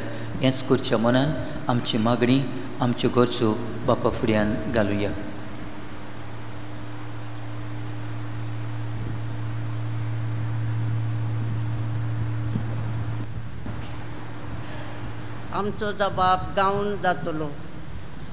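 An elderly man speaks slowly through a microphone in an echoing hall.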